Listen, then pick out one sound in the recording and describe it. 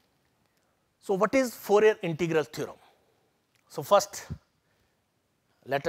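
An older man lectures calmly into a close microphone.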